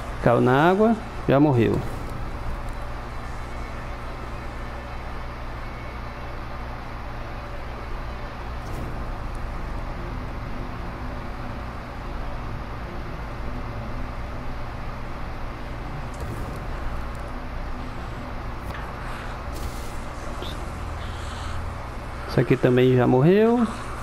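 A fire burns and crackles steadily.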